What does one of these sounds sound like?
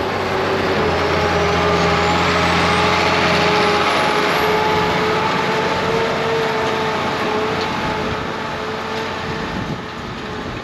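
A cultivator's tines rattle and scrape through soil.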